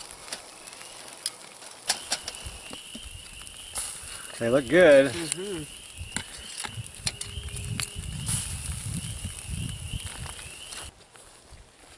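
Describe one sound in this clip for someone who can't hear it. Meat sizzles on a grill over a fire.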